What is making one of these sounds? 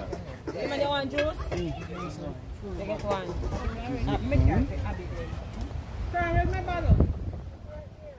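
Several women talk with animation close by, outdoors.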